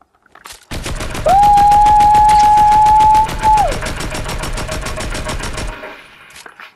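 An automatic rifle fires in rapid bursts in a video game.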